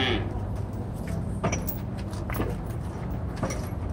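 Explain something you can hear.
Hooves thud softly on packed dirt as oxen walk.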